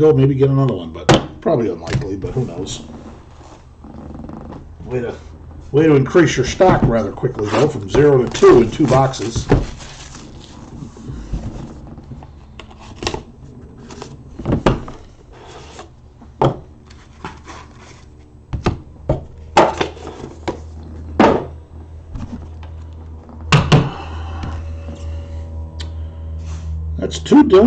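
Plastic card cases click and clack on a table.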